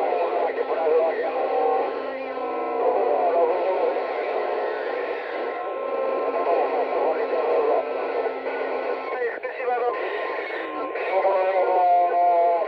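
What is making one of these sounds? A radio receiver hisses and crackles with a noisy signal.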